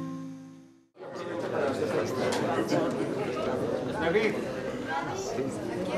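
A crowd of men and women chatters and laughs close by.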